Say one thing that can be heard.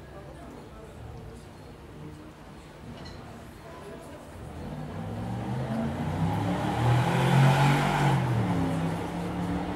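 A band plays on stage, quiet at first and then swelling louder.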